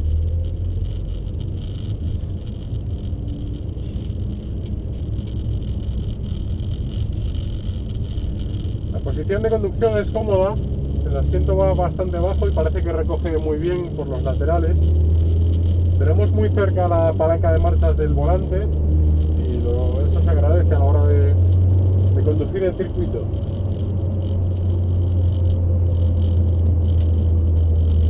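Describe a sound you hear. A car engine drones steadily from inside the cabin, its pitch rising and falling as it accelerates.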